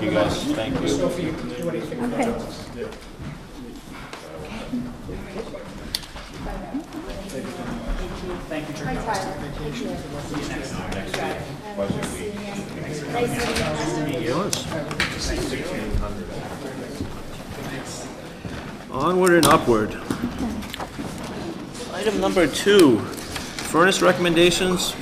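Several men and women chat quietly in the background.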